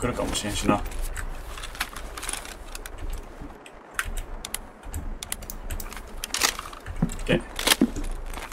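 Gear rustles and clinks as a soldier moves about indoors.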